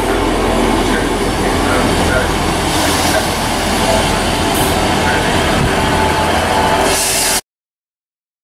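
Train brakes squeal as a train slows.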